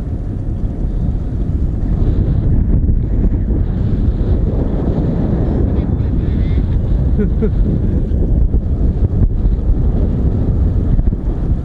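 Strong wind roars and buffets steadily against a microphone high in the air.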